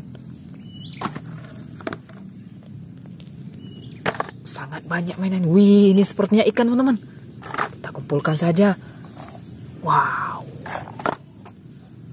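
Plastic toys knock and clatter on gravel.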